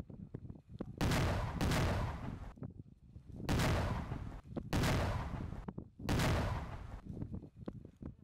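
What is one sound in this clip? Explosions boom one after another, rumbling loudly.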